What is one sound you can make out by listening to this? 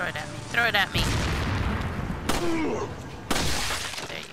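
A pistol fires several loud shots that echo.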